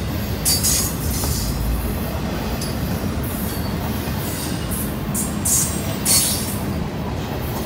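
Train wheels squeal and screech on the rails.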